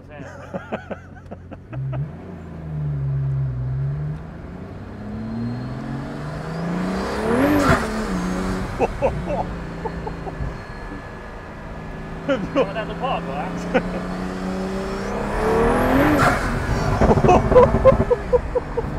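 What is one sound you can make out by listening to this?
A sports car engine revs and roars loudly.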